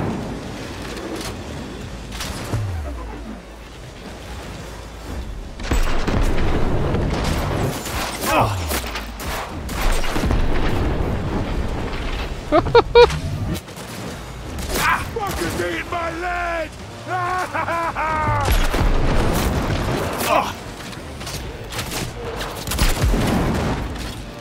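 Gunshots crack again and again.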